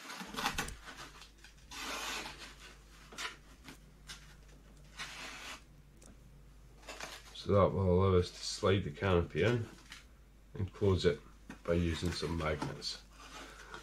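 Stiff paper rustles and scrapes under hands.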